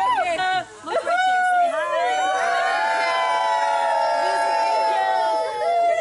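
A crowd of men, women and children shouts a long cheer together outdoors.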